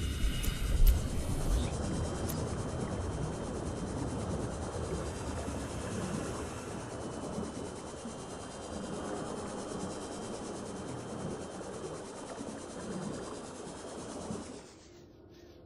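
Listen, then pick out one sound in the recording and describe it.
An underwater vehicle engine hums steadily as it rushes through water.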